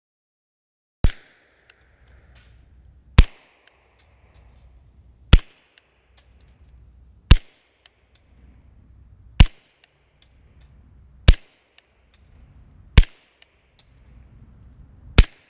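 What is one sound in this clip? A suppressed pistol fires sharp shots at a steady pace outdoors.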